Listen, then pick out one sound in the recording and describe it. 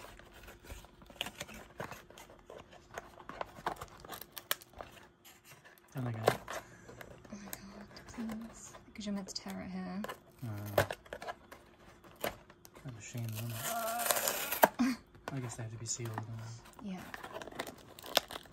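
Cardboard crinkles and scrapes as hands handle a small box.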